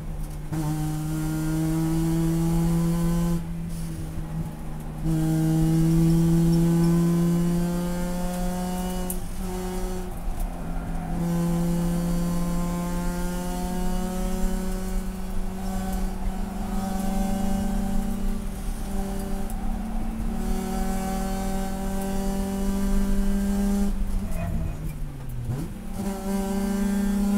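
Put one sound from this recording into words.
A race car engine roars loudly from inside the cabin, rising in pitch through each gear and dropping sharply at every shift.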